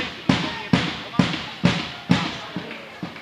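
A volleyball is struck repeatedly in an echoing sports hall.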